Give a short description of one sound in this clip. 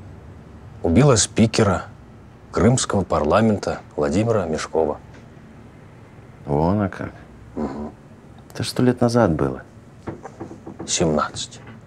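A young man speaks in reply, close by.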